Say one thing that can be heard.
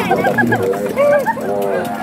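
A young boy laughs loudly.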